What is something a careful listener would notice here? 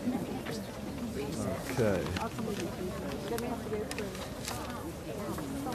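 Several people talk and chatter nearby outdoors.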